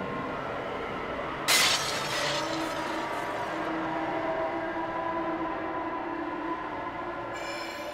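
An energy beam hums and crackles.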